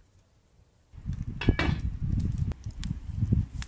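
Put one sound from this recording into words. Firewood crackles and pops in a stove.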